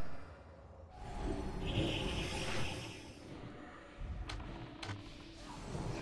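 Game combat effects clash and whoosh as spells are cast.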